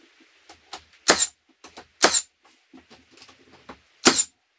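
A power drill whirs in short, sharp bursts close by.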